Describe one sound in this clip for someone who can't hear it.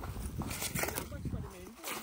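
Footsteps crunch on dry soil.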